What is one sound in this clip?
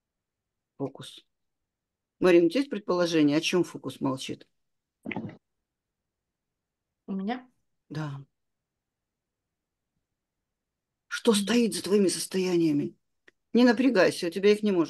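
A woman speaks calmly over an online call, in bursts with pauses.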